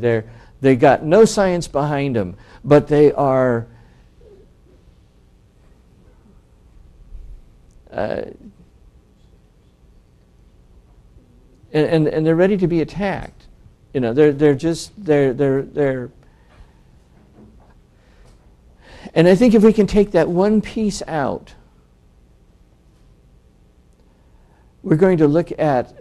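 A middle-aged man speaks calmly through a clip-on microphone, with pauses between phrases.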